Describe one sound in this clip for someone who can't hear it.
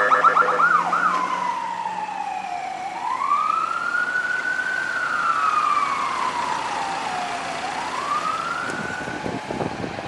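An ambulance siren wails slowly, rising and falling as it moves away.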